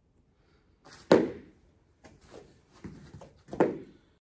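A body thumps onto a padded floor mat.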